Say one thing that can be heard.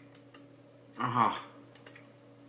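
A man makes a short voiced sound close by.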